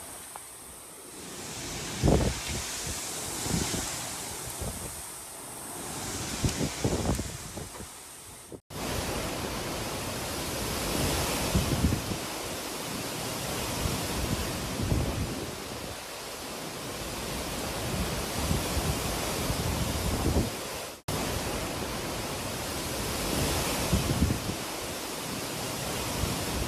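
Strong wind gusts roar and buffet the microphone.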